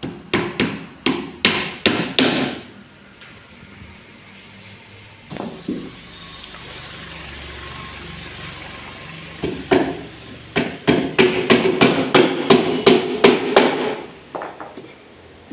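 A hammer knocks on wood in quick, sharp blows.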